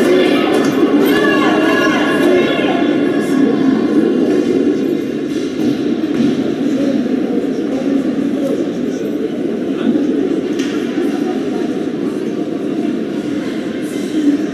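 A crowd murmurs and cheers in an echoing ice rink.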